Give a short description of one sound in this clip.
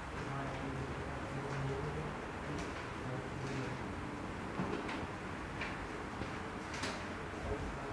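A felt eraser rubs across a whiteboard.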